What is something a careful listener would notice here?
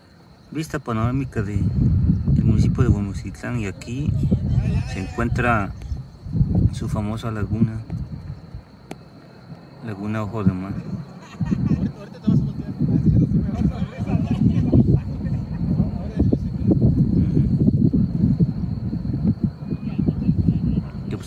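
Wind gusts roughly against the microphone outdoors.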